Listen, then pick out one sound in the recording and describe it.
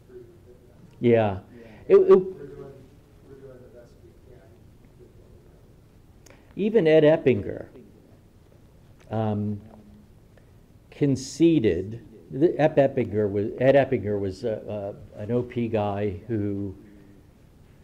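An elderly man speaks calmly and earnestly into a microphone, with pauses.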